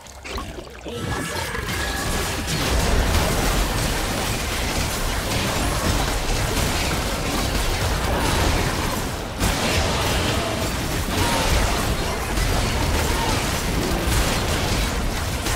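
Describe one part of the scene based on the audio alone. Fantasy combat sound effects of spells and clashing weapons crackle and boom rapidly.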